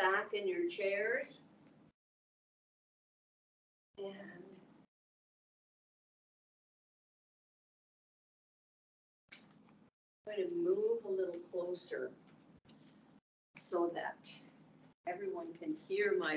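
A middle-aged woman talks calmly into a microphone, heard as if over an online call.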